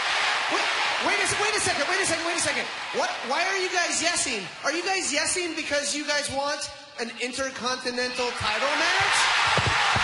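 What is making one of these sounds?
A man shouts forcefully into a microphone over loudspeakers.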